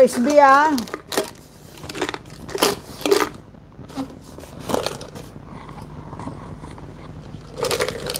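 A plastic jar knocks and rattles in a hand.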